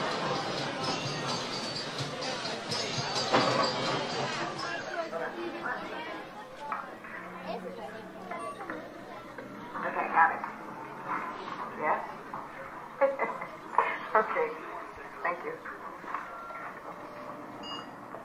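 A crowd of people chatter indoors.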